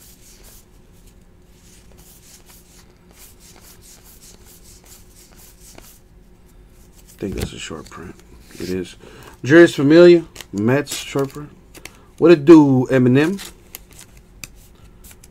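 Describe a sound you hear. Trading cards shuffle and flick softly between fingers.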